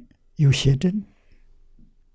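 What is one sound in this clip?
An elderly man speaks slowly and calmly into a close microphone.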